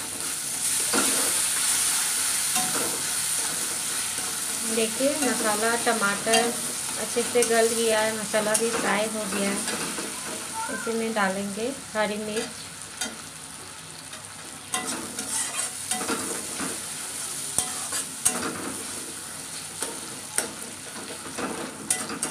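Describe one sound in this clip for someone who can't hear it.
A metal spatula scrapes and stirs against a steel wok.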